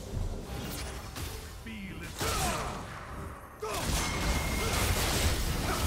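Video game spell effects whoosh and crackle in bursts.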